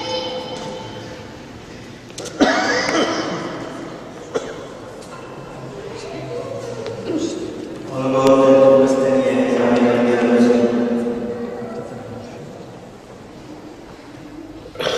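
A man speaks calmly through a microphone in a large echoing hall.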